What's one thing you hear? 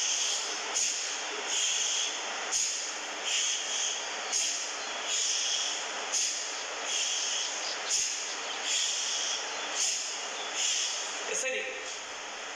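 A man exhales forcefully through his nose in quick, even bursts.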